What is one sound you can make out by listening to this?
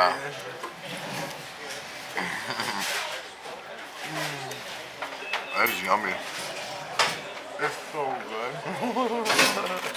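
A young man chews and smacks his lips while eating.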